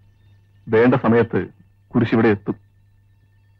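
A man speaks calmly and softly, close by.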